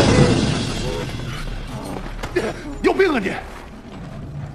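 A man asks a question sharply.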